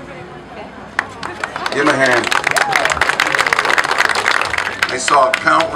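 A crowd claps and applauds.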